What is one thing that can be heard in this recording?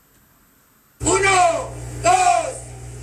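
A drum kit is played loudly, with drums and cymbals struck hard.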